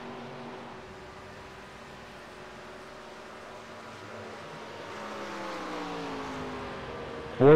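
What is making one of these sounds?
A race car engine drones, then roars louder as a car passes close by with a falling pitch.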